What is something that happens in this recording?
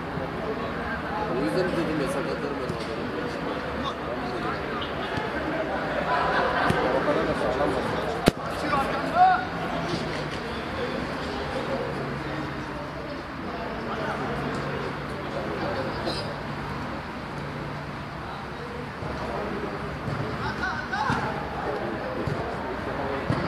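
Young men shout and call out to each other across an open pitch.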